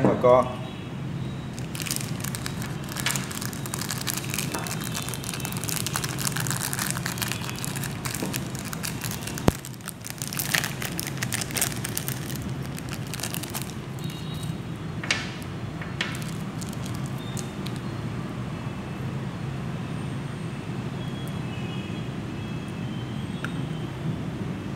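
Metal parts clink and tap against each other.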